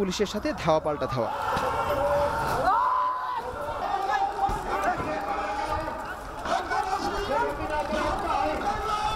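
A crowd of men shouts loudly outdoors.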